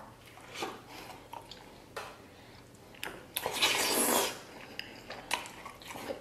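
A man slurps and chews food noisily.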